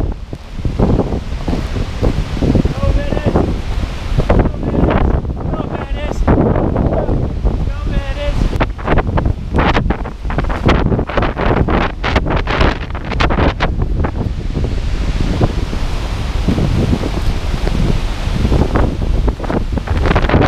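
Strong wind buffets close by, outdoors.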